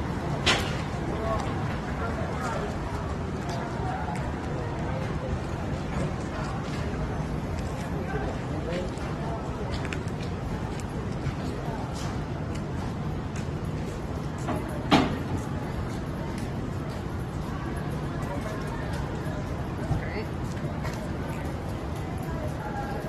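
A steady low city street hum fills the air outdoors.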